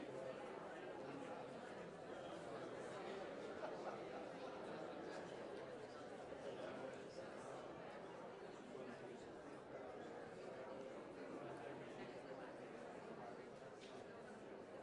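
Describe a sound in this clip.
A large audience murmurs and chatters in a big echoing hall.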